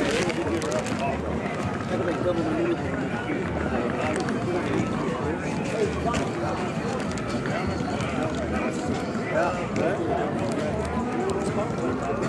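A plastic bag rustles close by.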